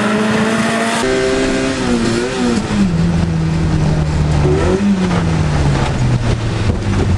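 A car engine roars loudly from inside the cabin, its pitch rising and falling.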